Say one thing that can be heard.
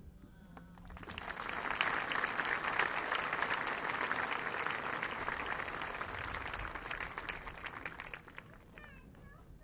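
A crowd applauds and cheers loudly, then fades.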